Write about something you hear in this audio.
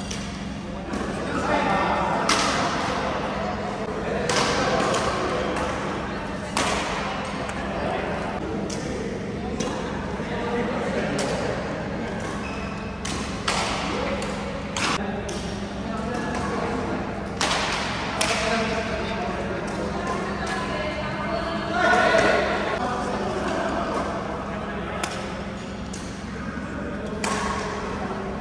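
Badminton rackets strike a shuttlecock with sharp pops that echo in a large hall.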